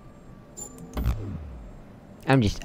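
A video game puzzle panel gives an electronic buzz as a traced line is erased.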